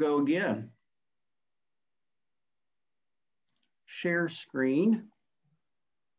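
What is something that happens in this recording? A middle-aged man speaks briefly and calmly over an online call.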